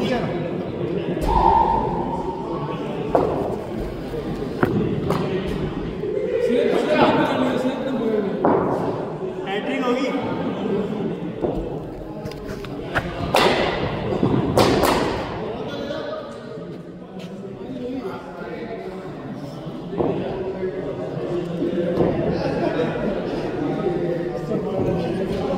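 A cricket bat strikes a ball with a sharp crack, again and again.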